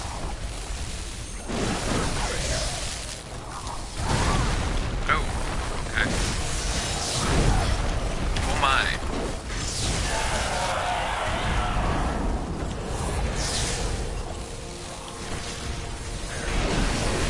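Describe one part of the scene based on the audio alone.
A monster screeches and roars.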